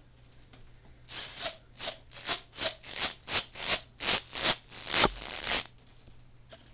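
A doll rubs rhythmically against the microphone.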